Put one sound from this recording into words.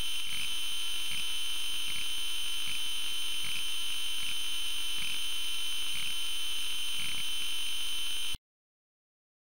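A steady high electronic whine plays with soft regular ticks, then cuts off abruptly.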